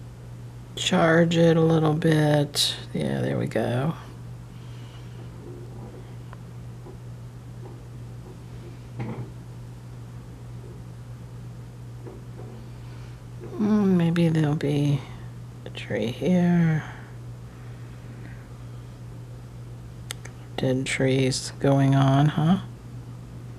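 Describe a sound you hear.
A paintbrush softly strokes and dabs on paper.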